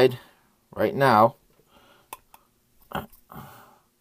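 A small brass casing clinks against metal as it is handled.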